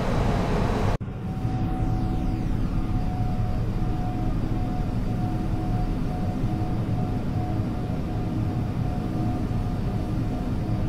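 The jet engines of an Airbus A320 hum steadily, heard from the cabin.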